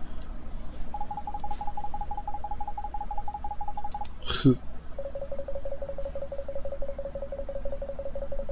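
Short electronic blips tick steadily as text scrolls by.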